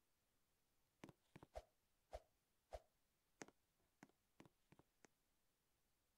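A game character's footsteps tap in a quick run.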